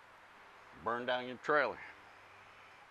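A middle-aged man speaks briefly and casually, close by.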